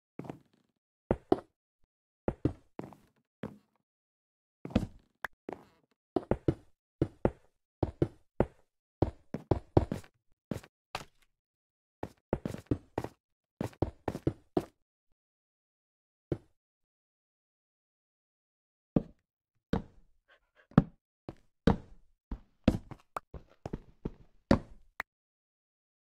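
Blocks are placed with quick, soft knocking thuds, in bursts.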